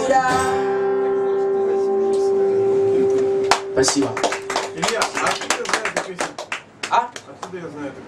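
An acoustic guitar strums.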